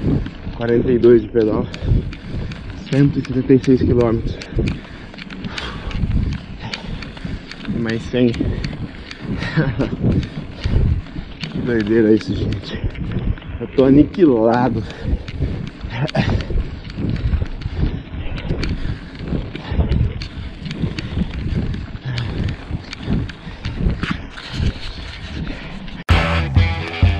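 Bicycle tyres rattle and crunch over a gravel road.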